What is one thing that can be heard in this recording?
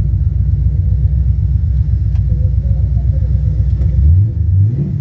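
A big car engine idles with a deep, lumpy rumble.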